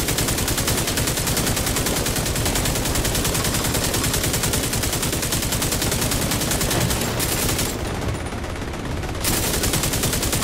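A machine gun fires in fast, rattling bursts.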